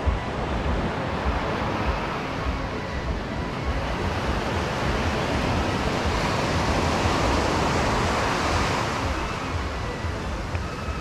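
Waves wash steadily onto the shore.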